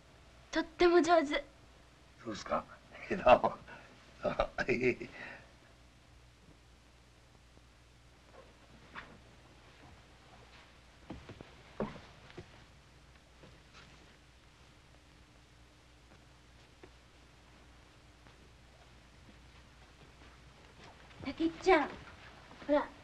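A young woman speaks.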